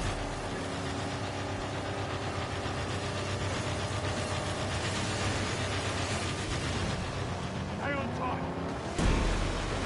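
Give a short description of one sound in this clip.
Tyres rumble over sand.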